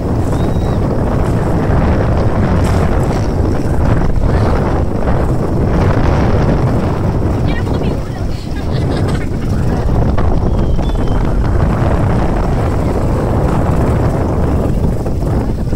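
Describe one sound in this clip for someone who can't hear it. Water splashes against an inflatable boat.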